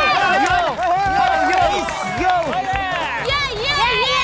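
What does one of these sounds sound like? Young men shout and cheer excitedly.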